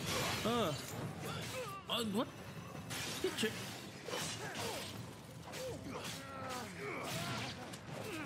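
Swords slash and clang with sharp metallic hits.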